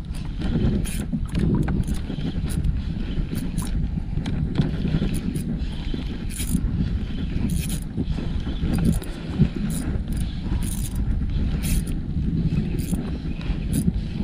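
Wind buffets loudly outdoors on open water.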